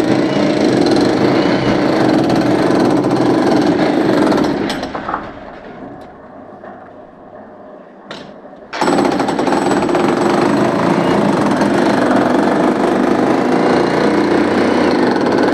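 A power drill hammers loudly into a wall.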